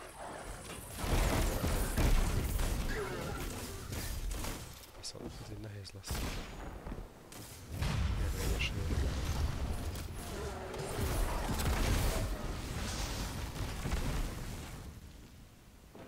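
Gunfire and explosions boom loudly.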